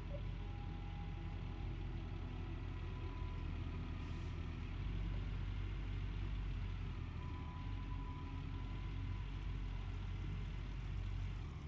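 Excavator hydraulics whine as the arm moves.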